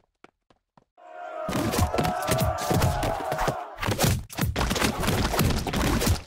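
A loud crunching clash of game sound effects rises as two crowds collide.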